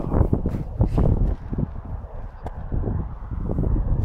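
A spade cuts into turf with a crunch.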